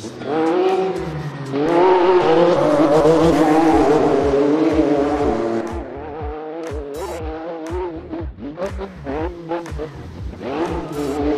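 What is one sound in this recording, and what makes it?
A rally car engine roars and revs hard, rising and falling in pitch as it shifts gears.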